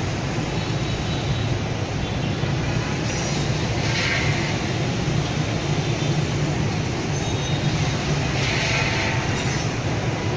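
Motorbike engines hum steadily as a stream of traffic passes along a street.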